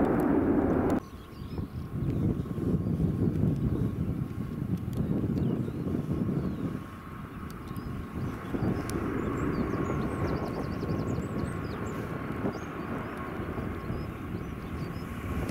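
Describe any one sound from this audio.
A turboprop airliner drones steadily as it comes in to land.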